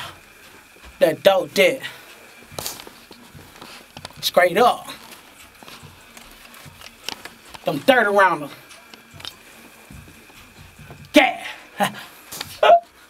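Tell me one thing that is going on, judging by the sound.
A man sings loudly and forcefully into a close microphone in short bursts.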